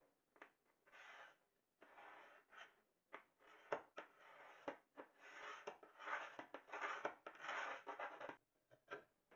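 A pencil scratches on wood.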